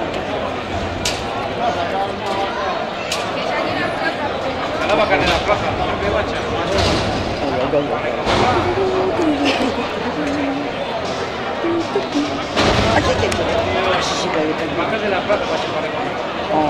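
People in a crowd whistle and shout now and then.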